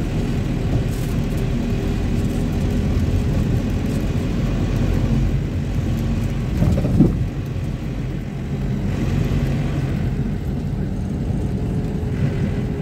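A vehicle engine hums steadily while driving along a street.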